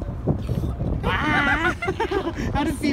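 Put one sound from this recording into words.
A young girl laughs and squeals excitedly close by.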